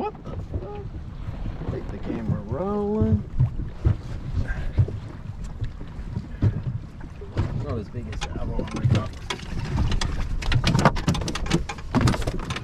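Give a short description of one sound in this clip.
Water laps against a small boat's hull.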